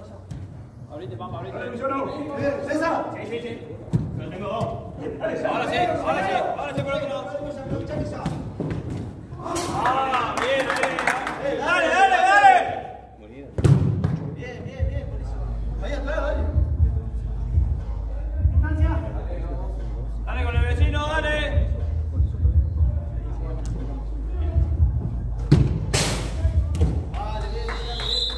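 Men shout and call out to each other, echoing in a large indoor hall.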